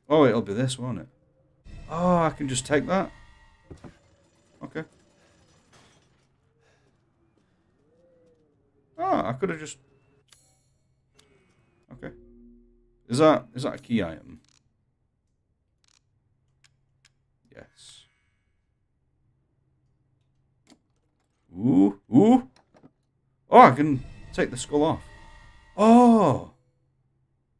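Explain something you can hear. A young man talks with animation, close to a microphone, in bursts with pauses.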